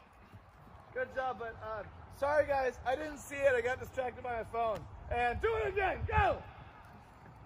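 A man calls out loudly outdoors.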